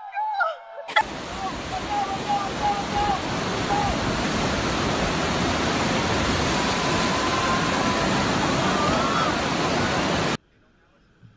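Waves crash and wash onto the shore.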